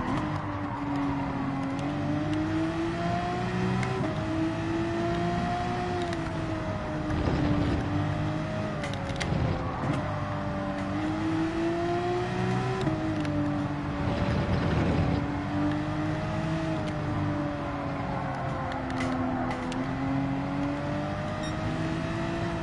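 A racing car engine roars steadily, its pitch rising and falling as it speeds up and slows for corners.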